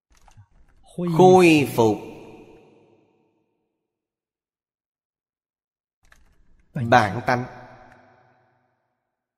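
An elderly man speaks calmly into a microphone, in short phrases with long pauses.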